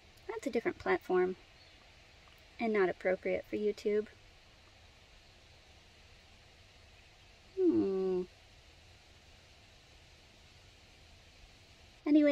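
A woman talks calmly and close to the microphone, in short bursts with pauses.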